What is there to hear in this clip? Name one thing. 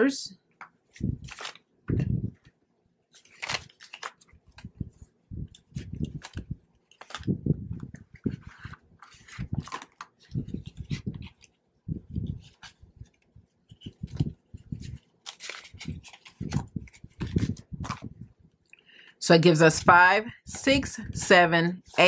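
Paper banknotes rustle and crinkle as they are handled and counted.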